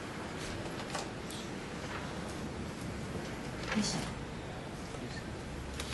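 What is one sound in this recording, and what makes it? A young woman speaks calmly into a microphone in a large echoing room.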